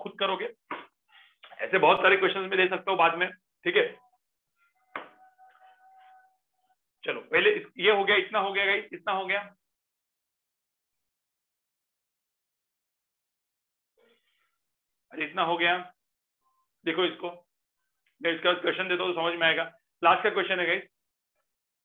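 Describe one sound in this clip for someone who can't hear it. A man speaks calmly into a microphone, explaining in short bursts with pauses.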